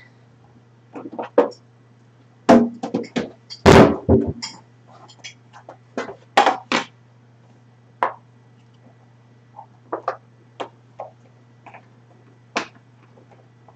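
Vegetables and plastic containers clatter and knock as hands handle them.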